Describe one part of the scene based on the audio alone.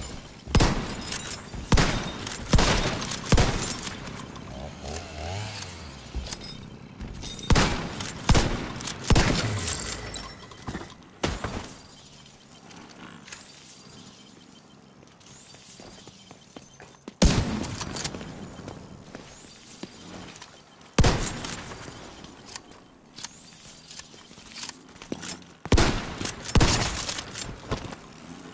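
Gunshots bang out in loud bursts with echoing reverberation.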